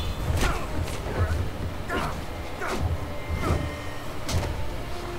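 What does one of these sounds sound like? Heavy punches land with hard thuds, over and over.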